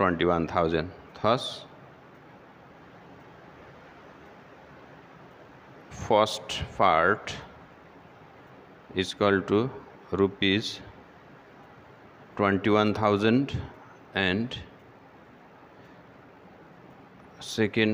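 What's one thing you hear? A young man speaks calmly and clearly into a headset microphone, in short phrases with pauses.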